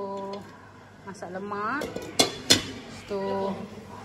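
A glass lid clinks against a dish.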